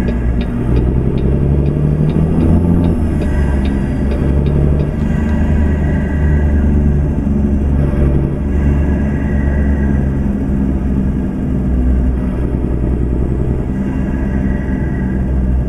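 A diesel semi-truck engine rumbles as the truck drives slowly.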